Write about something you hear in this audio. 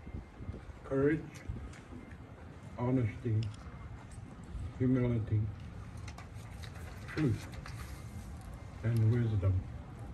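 An elderly man chants short phrases through a microphone, with pauses between them.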